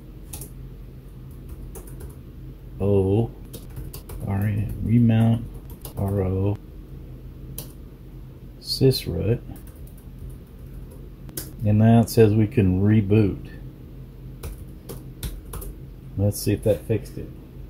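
Keyboard keys click as someone types.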